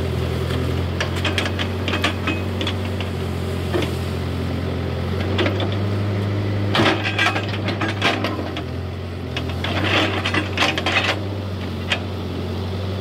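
A steel bucket scrapes and knocks against dirt and branches.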